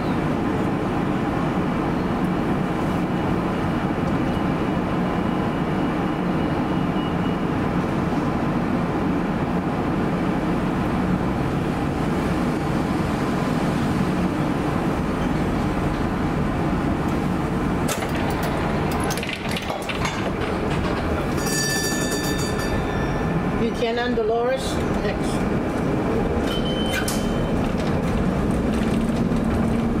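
City traffic rumbles steadily at a wide street crossing.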